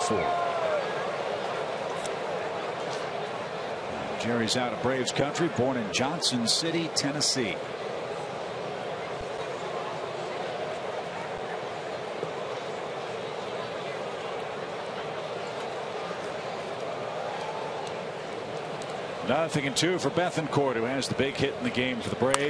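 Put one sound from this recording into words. A large stadium crowd murmurs steadily outdoors.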